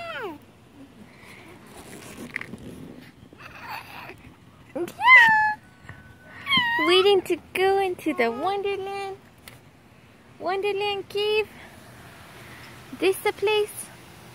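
A baby squeals and babbles loudly close by.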